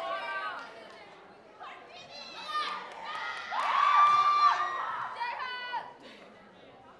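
Young women shout and cheer excitedly nearby.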